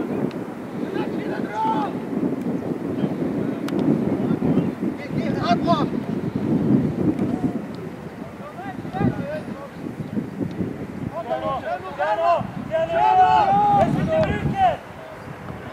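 Teenage boys shout to each other across an open field outdoors.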